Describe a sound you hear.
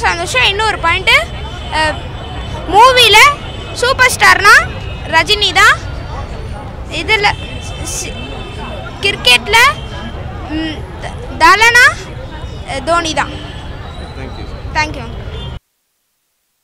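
A young boy speaks excitedly into a microphone close by.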